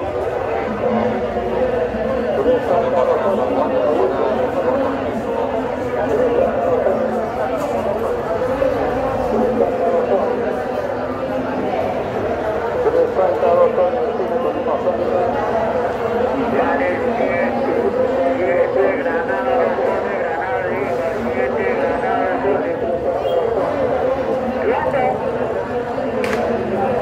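A large crowd of men and women murmurs and chatters all around outdoors.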